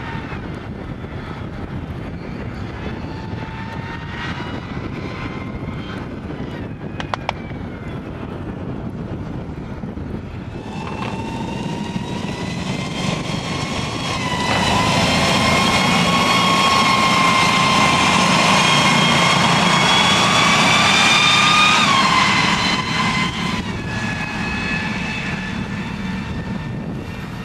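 Tank tracks rumble over frozen ground.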